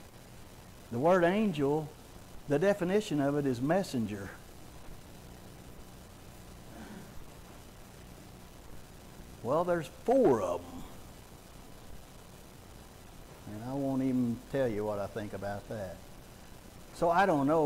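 A man speaks with animation, with pauses, in a large echoing room.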